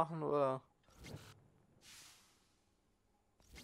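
A fire bursts into flame with a soft whoosh.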